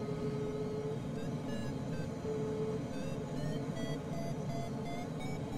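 A glider's flight instrument beeps quickly in rising pitches.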